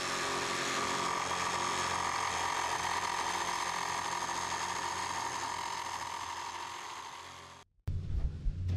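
A power jigsaw buzzes steadily, cutting through wood.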